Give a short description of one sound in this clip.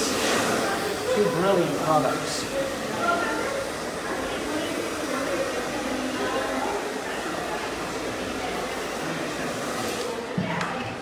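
A hair dryer blows steadily nearby.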